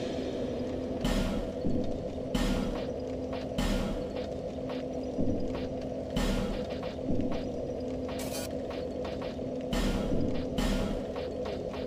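Soft menu clicks and chimes sound as options are chosen.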